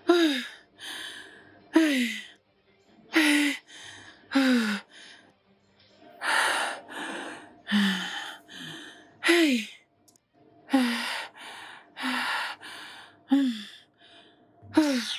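A woman shouts loudly in short, repeated bursts close by.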